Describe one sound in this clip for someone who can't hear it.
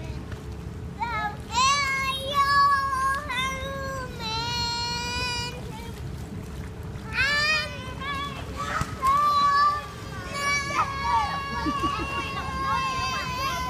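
A young girl calls out in a high, drawn-out voice nearby.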